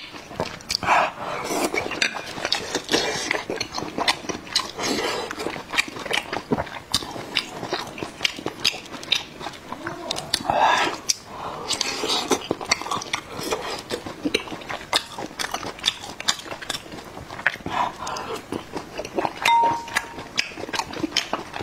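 A young man chews and slurps food close to a microphone.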